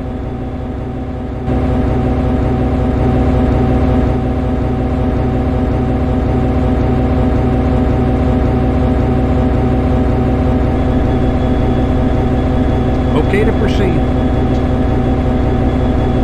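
An electric locomotive engine hums steadily while idling.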